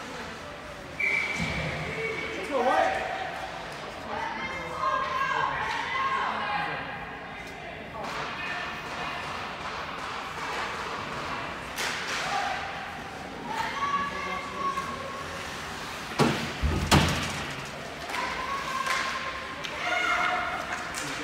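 Spectators shout and cheer in an echoing rink.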